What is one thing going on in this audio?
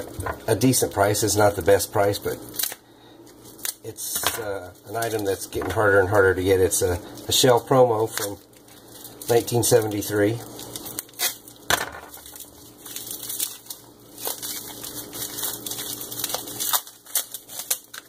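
Plastic wrapping crinkles and rustles in someone's hands.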